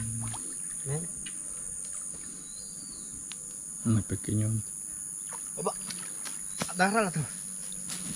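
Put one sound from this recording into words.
Water sloshes as a man wades through a pond.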